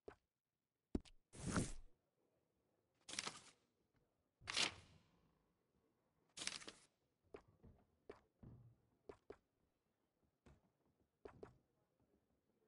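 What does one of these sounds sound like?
Paper pages turn in a book.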